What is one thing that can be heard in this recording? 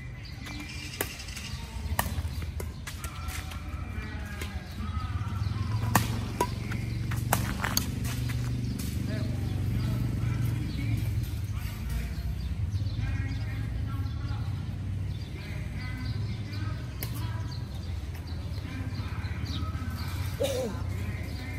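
Rackets hit a shuttlecock with sharp pops.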